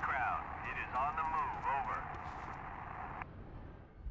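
Rifles fire in short bursts.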